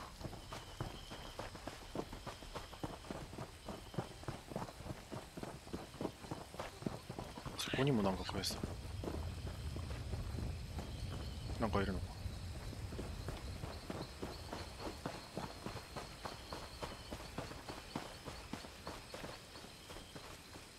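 Footsteps crunch steadily through grass and undergrowth.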